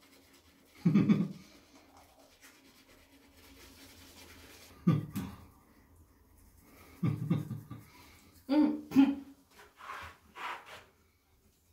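Toothbrushes scrub against teeth.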